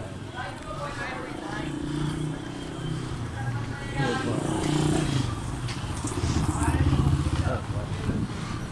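A motorcycle engine rumbles as it rides past close by.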